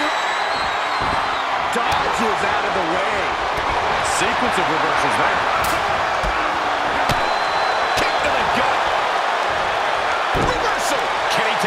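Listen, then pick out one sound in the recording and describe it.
Heavy blows thud sharply several times.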